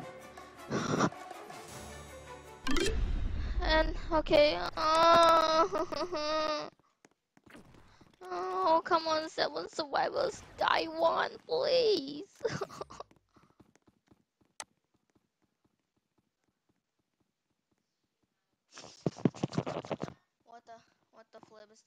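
A boy talks with animation into a headset microphone, close up.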